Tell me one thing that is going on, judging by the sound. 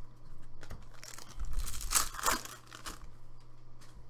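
Plastic card wrappers crinkle and rustle between hands.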